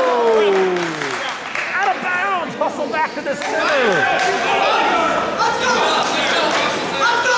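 A crowd of men and women shouts and cheers in an echoing gym.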